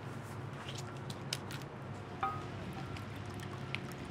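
Liquid pours from a bottle into a cup.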